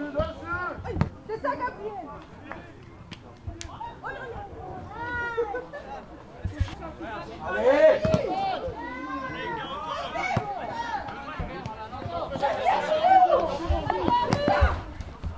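A football thuds as a player kicks it.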